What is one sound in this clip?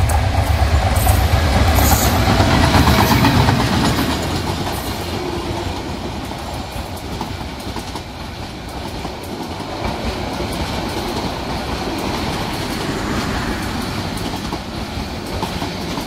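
Train wheels clatter rhythmically over the rail joints.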